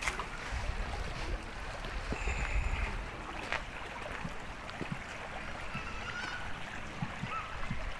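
A shallow stream trickles and flows steadily nearby.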